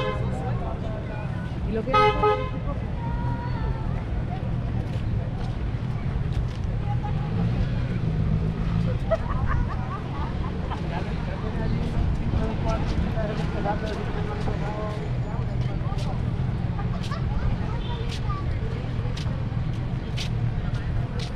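Adults chatter nearby along a busy walkway.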